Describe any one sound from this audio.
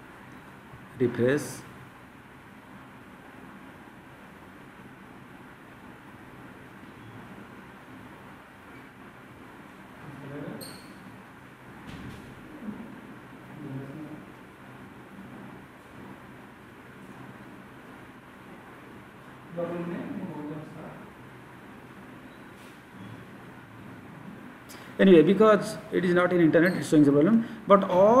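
A middle-aged man speaks calmly through a computer microphone, in short bursts.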